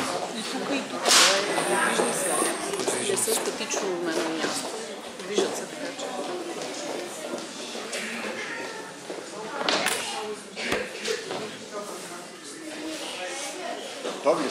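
A crowd of adults and children chatters in the background of a large echoing hall.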